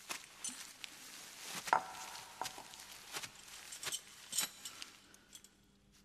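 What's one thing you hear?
Straw rustles as a person shifts on it.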